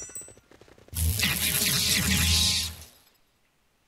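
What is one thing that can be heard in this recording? A magical spell shimmers and whooshes.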